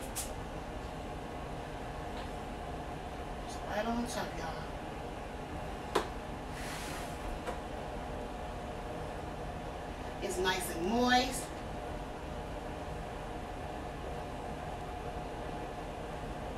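A metal pan clinks and scrapes on a stovetop.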